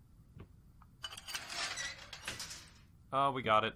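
A metal gate slides and rattles.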